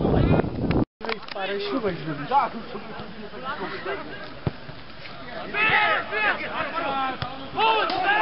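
Men shout and call out across an open field at a distance.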